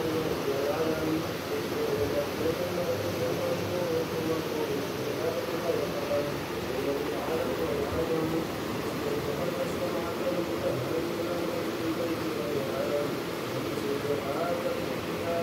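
A group of men chant together in a steady, droning recitation.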